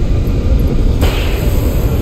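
A gunshot cracks in a video game.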